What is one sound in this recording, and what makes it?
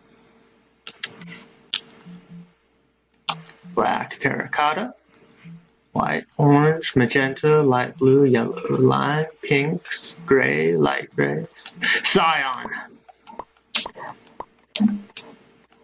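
Soft menu clicks tick as selections change.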